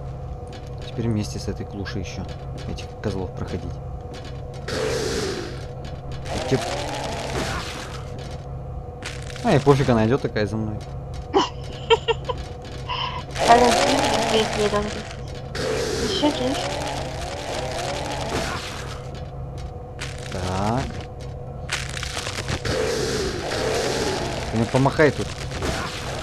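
A young man talks with animation into a headset microphone, close by.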